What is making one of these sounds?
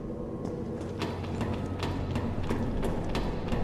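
Hands and boots knock on metal ladder rungs.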